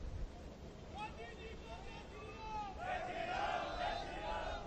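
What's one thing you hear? An elderly man speaks loudly through a microphone and loudspeakers.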